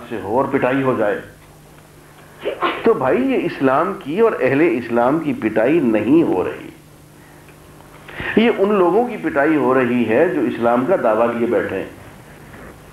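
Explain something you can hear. An elderly man speaks with animation into a microphone.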